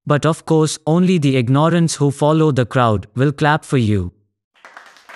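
A man speaks firmly and close up.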